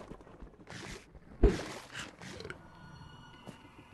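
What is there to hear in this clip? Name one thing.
A fishing line plops into water.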